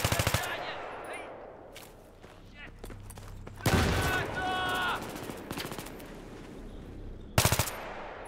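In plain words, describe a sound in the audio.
A rifle fires short, rapid bursts up close.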